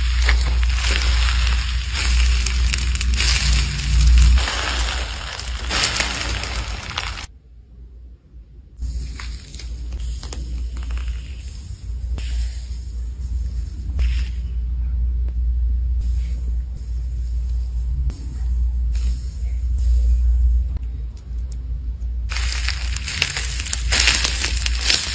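Soft slime squishes and crackles between fingers.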